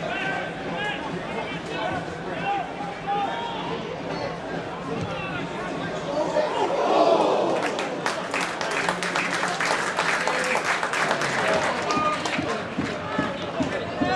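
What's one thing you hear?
A large crowd chants and sings outdoors.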